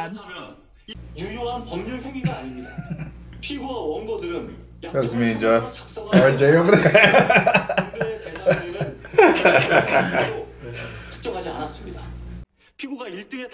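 Several young men talk and laugh loudly together.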